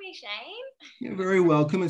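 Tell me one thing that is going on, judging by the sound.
A young woman speaks and laughs over an online call.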